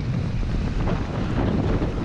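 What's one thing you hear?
Dirt bike engines rev and whine up a hillside.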